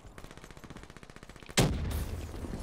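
A machine gun fires a fast burst of shots.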